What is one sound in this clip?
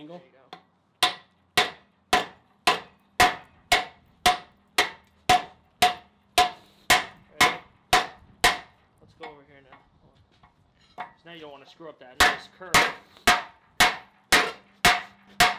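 A hammer rings in quick, steady blows on hot metal on an anvil.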